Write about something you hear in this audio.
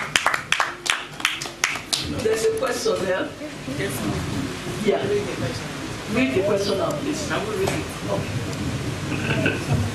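People in a crowd chatter in the background.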